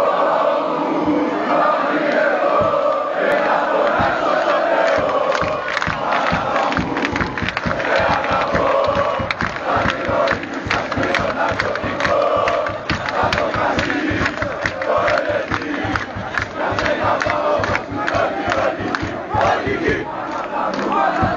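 A large crowd of men chants loudly together in a stadium.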